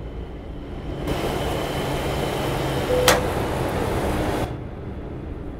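Fuel hisses steadily into a truck's tank, then stops.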